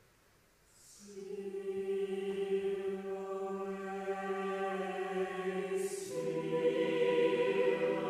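A choir sings slowly in a large echoing hall.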